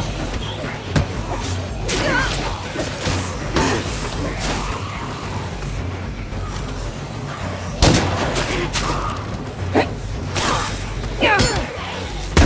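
Zombies snarl and screech close by.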